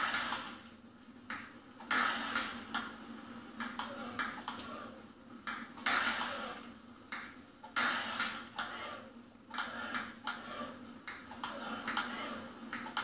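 A table tennis ball clicks back and forth in a video game, heard through a television speaker.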